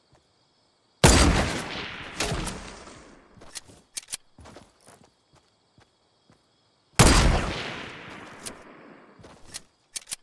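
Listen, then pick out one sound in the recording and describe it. A sniper rifle fires single loud shots that ring out and fade.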